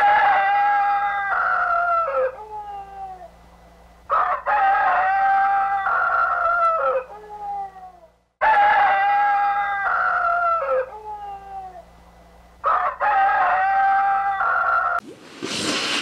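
A rooster crows loudly, again and again.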